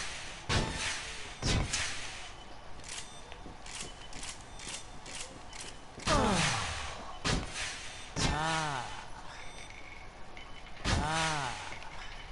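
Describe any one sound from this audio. Heavy gunfire blasts in short bursts.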